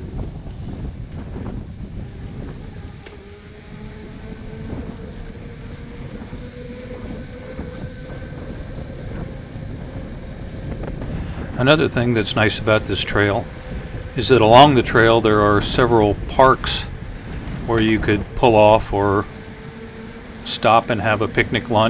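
Wind rushes and buffets steadily as a bicycle rides along.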